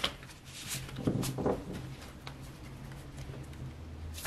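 Playing cards rustle softly as a deck is handled.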